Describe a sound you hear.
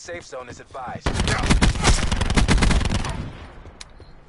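An automatic rifle fires bursts in a video game.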